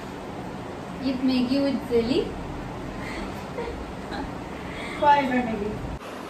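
Young women laugh together close by.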